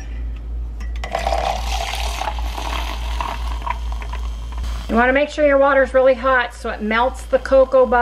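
A small electric frother whirs in a drink.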